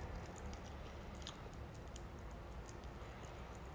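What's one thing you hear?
A woman slurps noodles close by.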